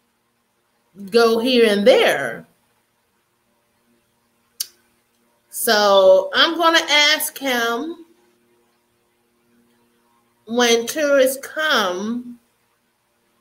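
A woman talks calmly and warmly into a close microphone, in short bursts with pauses.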